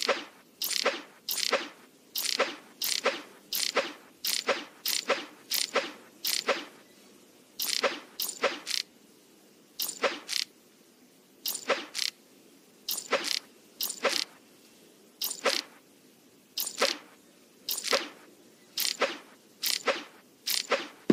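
Short swishing game sounds play again and again as a spider hops across a web.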